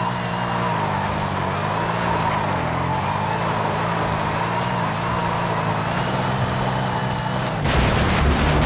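Tyres squeal as a car drifts.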